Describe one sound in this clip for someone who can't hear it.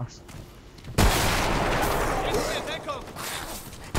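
A loud explosion bursts, with debris scattering.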